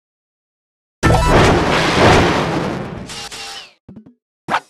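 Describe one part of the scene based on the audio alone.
An explosion bursts with a loud roar.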